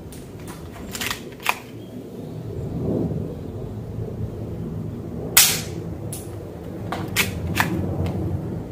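Pellets clack against metal targets.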